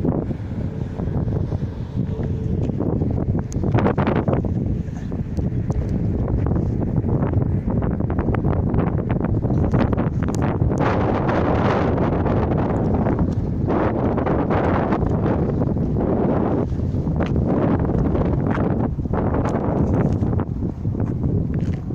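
Wind blusters over the microphone outdoors.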